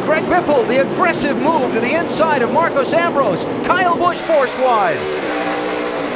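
A race car engine revs hard and shifts gears up close.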